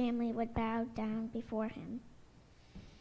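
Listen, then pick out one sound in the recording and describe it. Children sing together.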